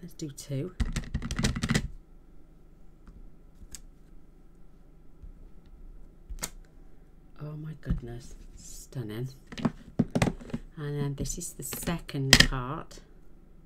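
Plastic cases clack as they are handled on a table.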